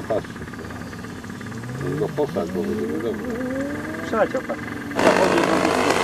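A model airplane engine buzzes and whines, rising in pitch as the plane flies past.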